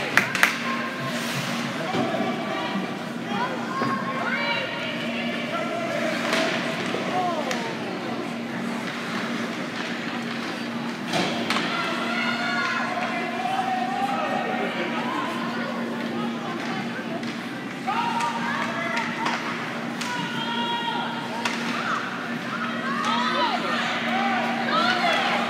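A crowd of spectators chatters and calls out in a large echoing arena.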